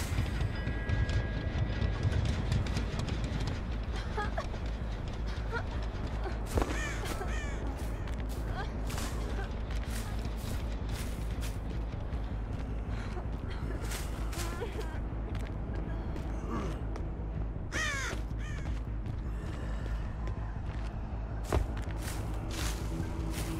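Footsteps crunch through grass and over wooden boards.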